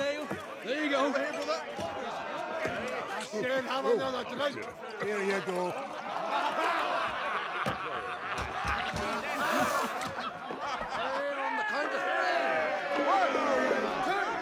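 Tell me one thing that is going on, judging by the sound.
A group of men shout and cheer rowdily together.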